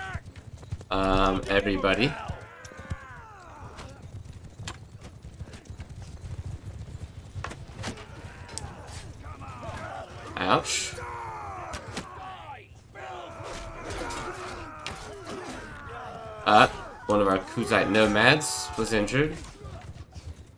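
A crowd of men shout battle cries.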